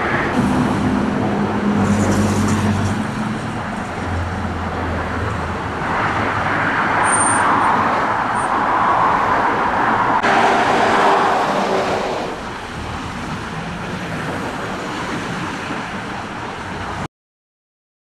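Heavy traffic roars steadily along a busy motorway.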